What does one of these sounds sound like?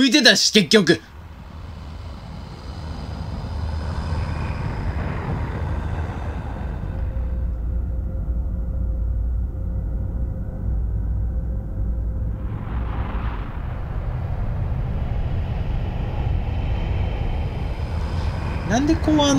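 A huge airship's engines rumble deeply and steadily overhead.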